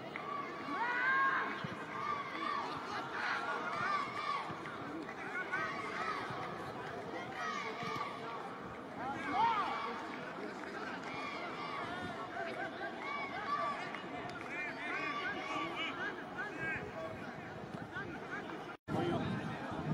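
A crowd chatters and calls out across a large open stadium.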